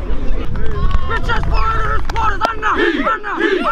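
A group of young men shouts and chants together loudly.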